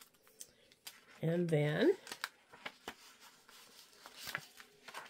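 A sleeve brushes softly over paper on a table.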